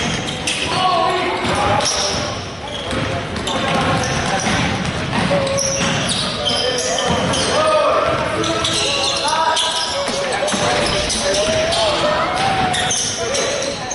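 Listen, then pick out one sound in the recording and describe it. Young men shout and call out to each other across an echoing gym.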